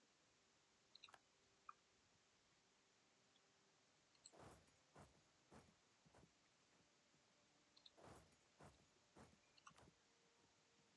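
Soft game interface clicks and blips sound now and then.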